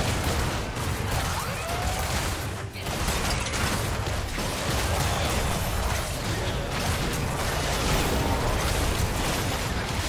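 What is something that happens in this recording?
Spell effects and sword strikes clash in a dense game fight.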